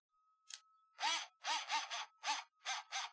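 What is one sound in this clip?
An electric screwdriver whirs in short bursts.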